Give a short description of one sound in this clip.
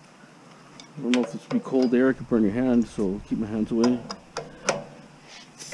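Metal tools clink and rattle.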